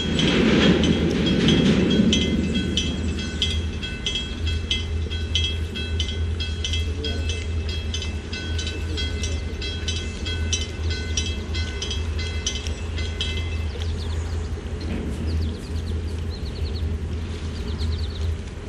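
Water washes along a boat's hull.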